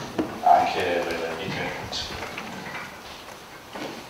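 Chairs scrape and feet shuffle as a group of people stand up in an echoing room.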